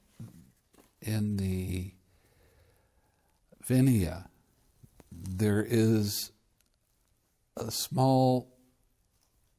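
An elderly man speaks calmly and slowly into a close microphone, pausing between phrases.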